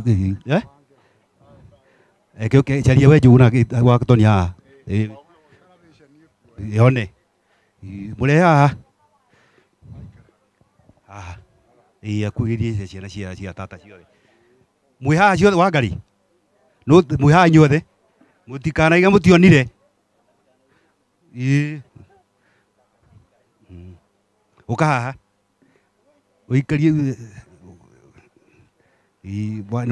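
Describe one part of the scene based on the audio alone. An elderly man speaks in bursts with pauses, close by.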